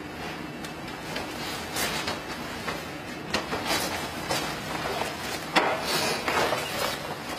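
A man's feet scuff and stamp on hard pavement.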